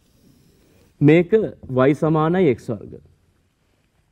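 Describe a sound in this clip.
A man speaks briefly and with animation, close by.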